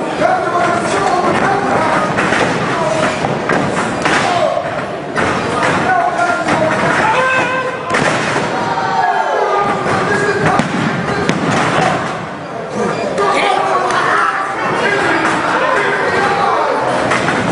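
Blows land with sharp slaps and thuds.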